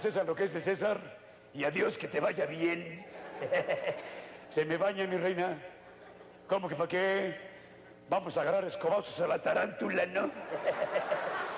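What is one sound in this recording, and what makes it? A middle-aged man speaks with animation, in short bursts with pauses.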